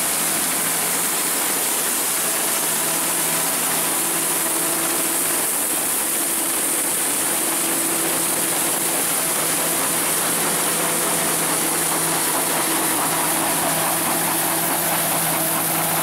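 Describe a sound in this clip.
Wheat stalks rustle and crackle as a harvester cuts through them.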